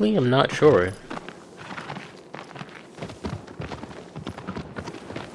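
A horse's hooves gallop over hard ground.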